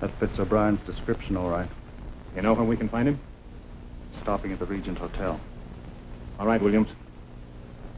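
Men talk quietly and tensely, close by.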